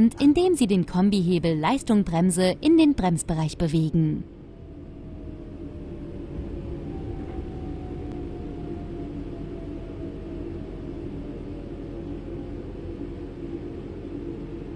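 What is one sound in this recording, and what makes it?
A train's electric motors hum steadily.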